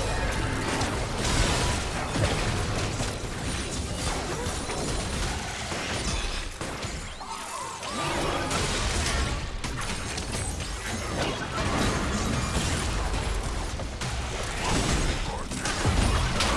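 Magic spells crackle and blast in a fast battle.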